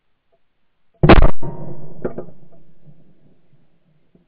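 A rifle shot cracks loudly and echoes away across open ground.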